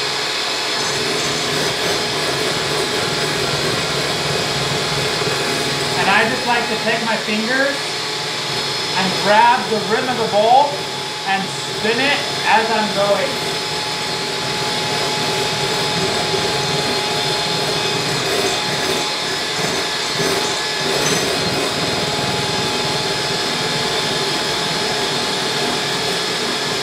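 A hand mixer whirs steadily.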